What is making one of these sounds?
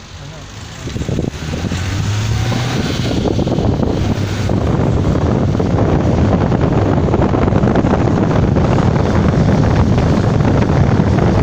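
Tyres roll and crunch over a rough road surface.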